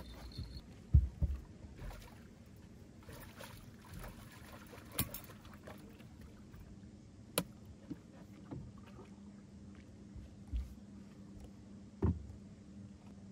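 Knocks and clunks sound on a boat's deck.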